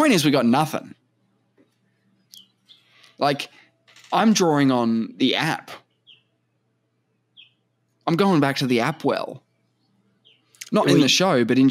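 A young man talks with animation into a close microphone, in short bursts with pauses.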